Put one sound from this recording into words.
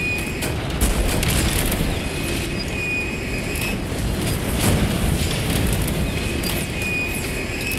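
Explosions rumble and roar nearby.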